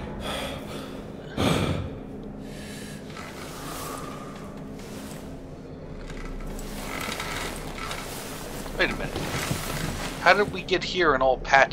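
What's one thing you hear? Bedding rustles as a person shifts and sits up.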